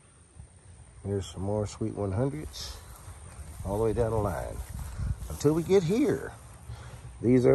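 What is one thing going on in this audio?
A middle-aged man talks calmly, close by.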